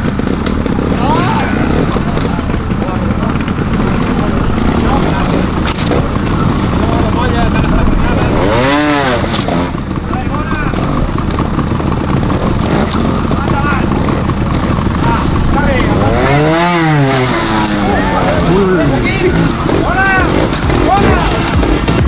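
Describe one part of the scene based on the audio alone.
A motorcycle engine revs up and down in sharp bursts.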